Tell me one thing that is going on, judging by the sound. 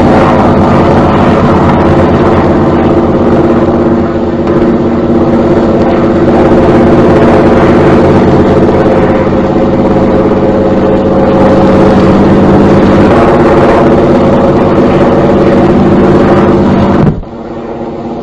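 A propeller plane's engine drones steadily overhead.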